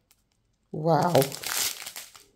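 A plastic bag crinkles as fingers handle it.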